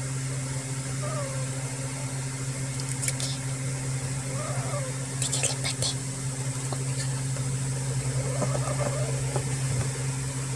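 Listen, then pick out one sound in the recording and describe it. A cat meows softly, close by.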